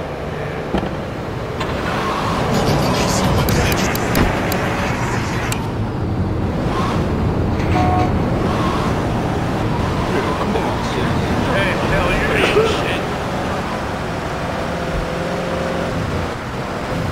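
A car engine runs and revs as the car drives.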